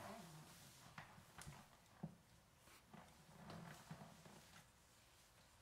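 A wooden bench knocks and creaks as a man gets up from it.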